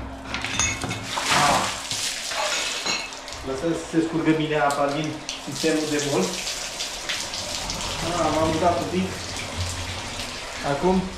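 Water gushes from a hose and splashes onto a tiled floor.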